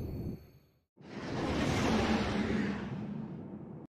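A spaceship engine roars past with a rushing whoosh.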